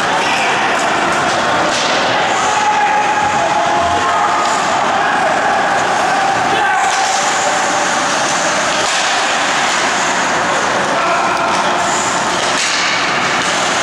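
A crowd of spectators chatters in a large echoing rink.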